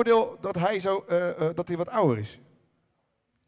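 A man speaks with animation into a microphone over loudspeakers.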